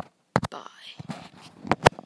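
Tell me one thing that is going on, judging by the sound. Piano notes play.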